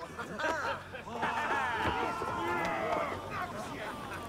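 A group of men cheer loudly.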